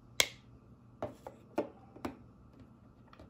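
Small plastic objects clack and tap against a wooden table.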